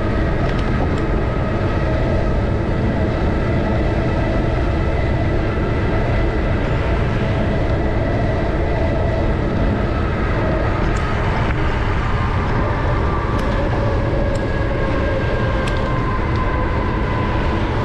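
A car drives steadily along a road with a low, constant rumble.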